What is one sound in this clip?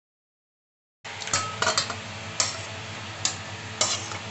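A metal spatula scrapes and clinks against a metal pan while thick curry is stirred.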